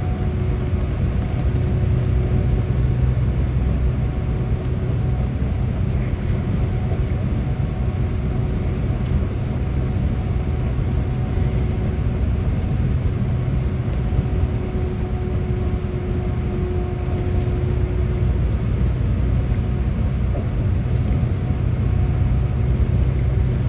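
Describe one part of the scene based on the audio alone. Tyres roar on the road with a hollow echo.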